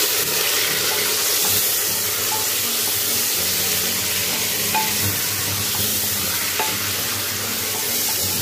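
Water boils and bubbles in a pot.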